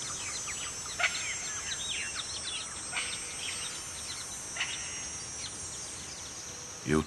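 Birds chirp and twitter overhead.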